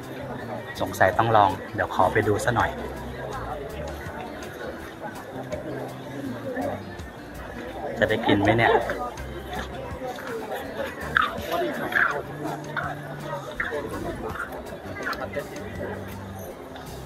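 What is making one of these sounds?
A crowd of people chatters nearby in a busy, bustling space.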